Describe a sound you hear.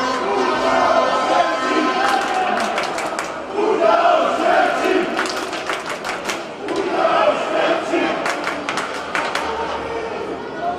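A large crowd chants loudly in an echoing arena.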